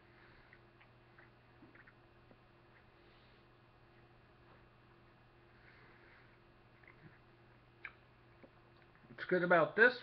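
A man chews food with his mouth closed.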